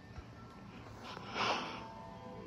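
A television plays a short musical intro.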